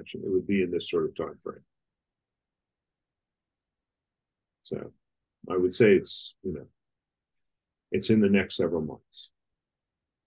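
A middle-aged man speaks calmly in short phrases over an online call.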